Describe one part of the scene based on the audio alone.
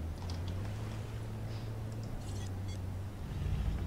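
A dinosaur wades and splashes through shallow water.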